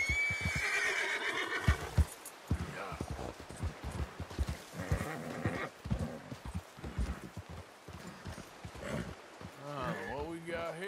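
Horse hooves thud on rocky ground at a steady walk.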